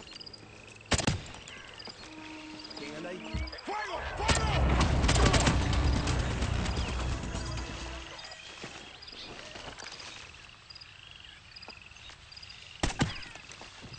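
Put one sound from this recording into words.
A pistol fires a few sharp shots.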